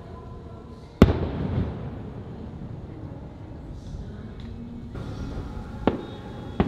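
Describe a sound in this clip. Fireworks boom loudly in the distance, echoing across open air.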